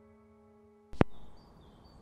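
A turntable button clicks sharply.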